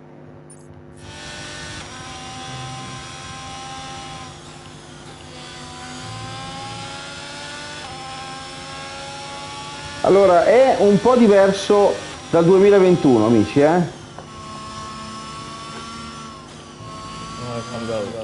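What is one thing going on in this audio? A racing car engine whines and shifts through gears.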